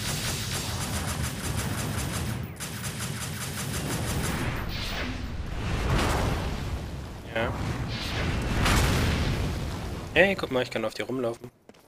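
Game music plays with a steady beat.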